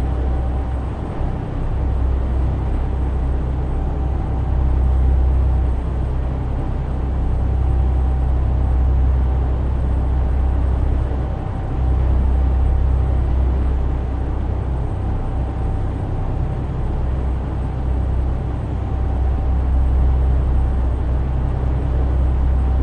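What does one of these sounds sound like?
A truck engine hums steadily with a deep rumble.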